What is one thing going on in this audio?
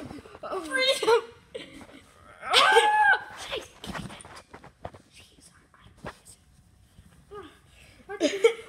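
Cloth rustles and brushes close by.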